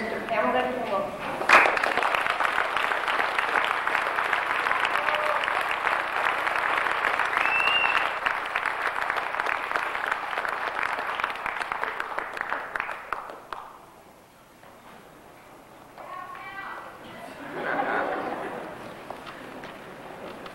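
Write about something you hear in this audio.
An elderly woman speaks calmly into a microphone in an echoing hall.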